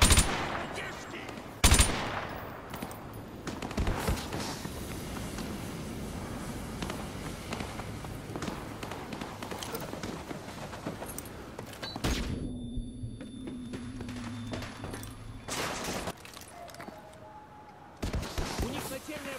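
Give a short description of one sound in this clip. Loud rifle shots ring out every few seconds.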